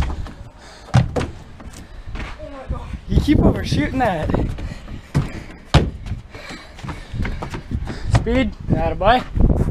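A young man lands with a thump on wooden boards.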